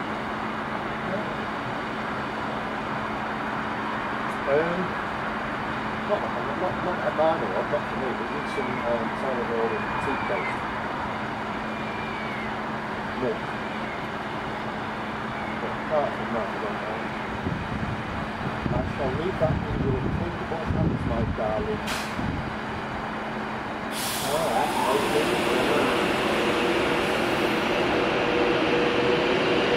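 An electric Pendolino express train hums as it slowly pulls along a platform.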